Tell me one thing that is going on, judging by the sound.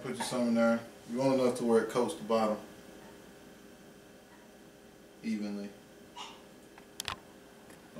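A pan scrapes on a stovetop.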